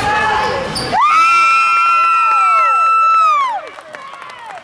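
A referee blows a long, shrill whistle.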